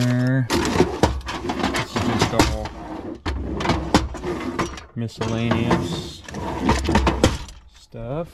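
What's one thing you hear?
A plastic drawer slides open and shut.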